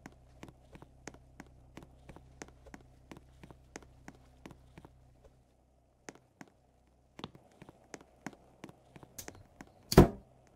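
Footsteps tap quickly and evenly on a hard surface.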